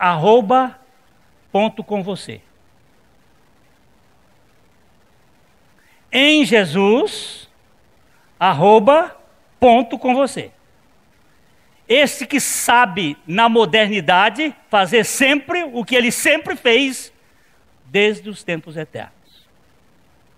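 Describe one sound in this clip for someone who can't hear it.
A middle-aged man speaks with animation into a microphone, in bursts with pauses.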